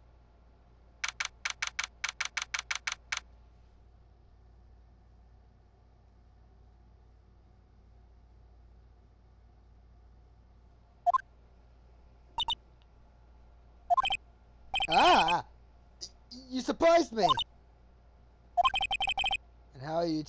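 Rapid electronic blips tick out in quick bursts.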